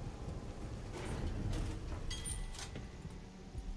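A metal gate clanks and rattles open.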